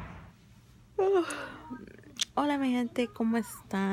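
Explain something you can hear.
A young woman squeals and laughs close to a microphone.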